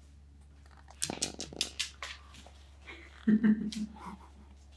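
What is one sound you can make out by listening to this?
Footsteps patter across a wooden floor.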